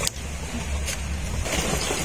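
Water trickles from a tap.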